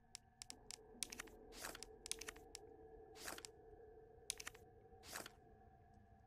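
Short, sharp menu clicks sound several times in quick succession.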